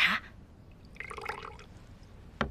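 Tea pours into a cup.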